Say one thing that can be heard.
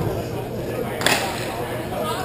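A puck thuds sharply against a goalie's pads.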